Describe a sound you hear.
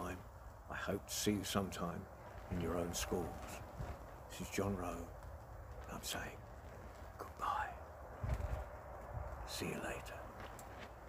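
An elderly man talks with animation close to a microphone.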